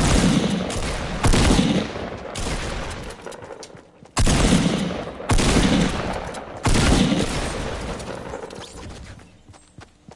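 Gunshots crack in loud rapid bursts.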